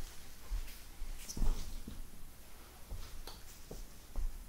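Footsteps thud softly on a carpet.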